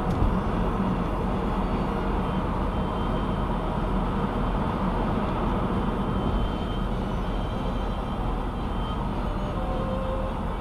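A car's engine hums steadily and tyres roar on the highway from inside the car.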